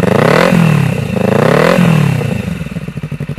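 A motorcycle engine revs hard twice through a loud exhaust.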